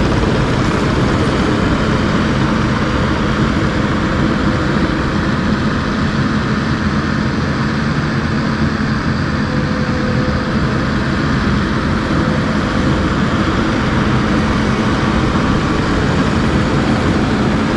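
A compact track loader's diesel engine rumbles steadily nearby.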